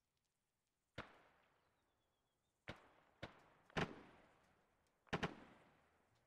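Gunshots ring out and echo.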